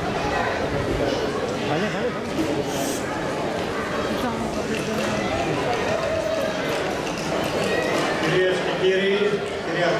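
Children and adults chatter in the background.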